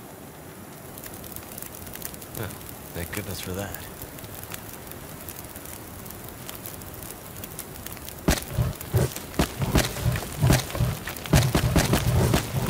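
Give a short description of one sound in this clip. A fire crackles and pops, growing louder.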